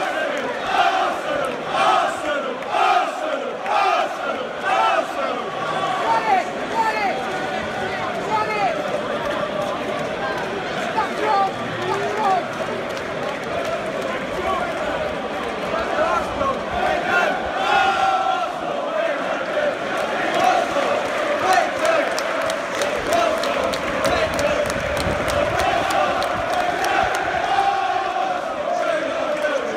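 A large stadium crowd murmurs and chatters, echoing around the stands.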